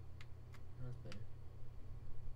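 A young man speaks briefly and quietly close to a microphone.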